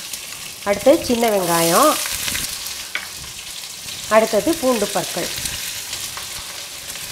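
Food sizzles softly in hot oil in a pan.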